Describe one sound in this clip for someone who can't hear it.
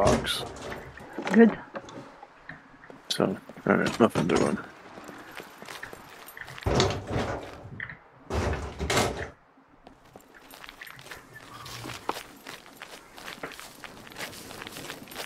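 Footsteps scuff over concrete and then gravel.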